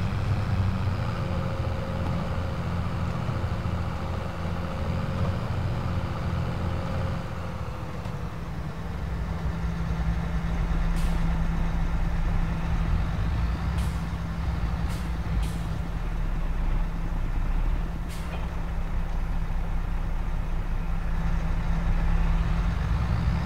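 A tractor engine rumbles steadily from inside the cab.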